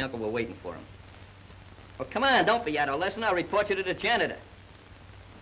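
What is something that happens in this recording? A man speaks firmly and nearby.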